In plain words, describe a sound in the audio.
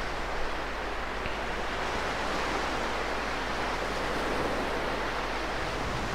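Sea water washes gently against the shore outdoors.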